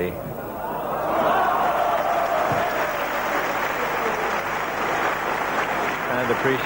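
A crowd in a large hall cheers and applauds.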